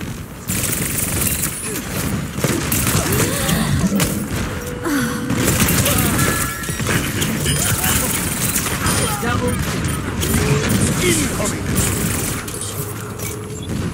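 Rapid blaster shots fire in quick bursts.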